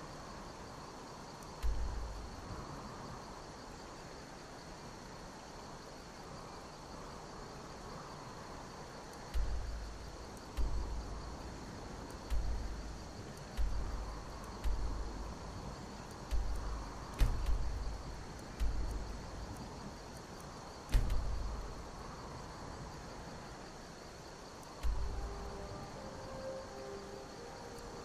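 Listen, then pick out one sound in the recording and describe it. Wind blows steadily.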